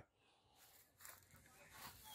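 Footsteps crunch softly on gravel and dry leaves.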